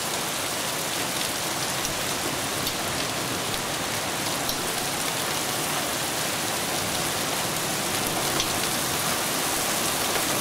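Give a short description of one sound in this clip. Wind rushes through the trees.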